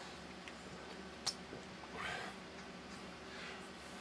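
A man gulps from a squeezed bottle.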